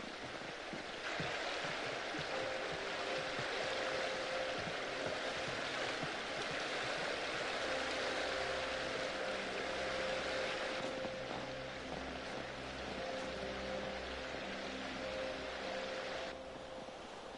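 Wind blows through a snowy forest.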